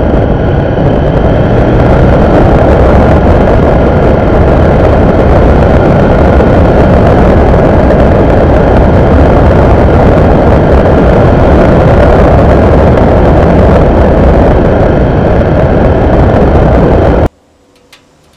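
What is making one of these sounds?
A motorcycle engine roars steadily as it rides along a road.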